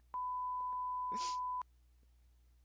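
A steady test tone beeps.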